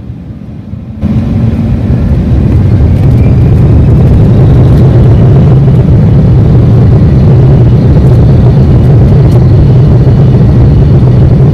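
Jet engines roar loudly as an airliner speeds down the runway.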